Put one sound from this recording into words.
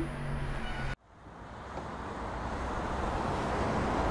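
A car door clicks open.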